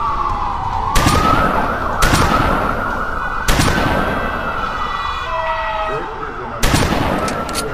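Loud rifle shots crack and echo.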